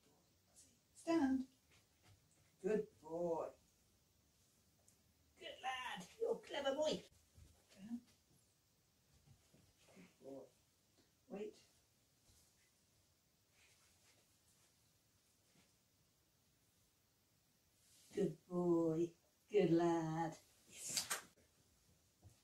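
A woman gives short commands to a dog in a calm, upbeat voice.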